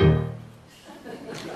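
A group of singers finishes a note together.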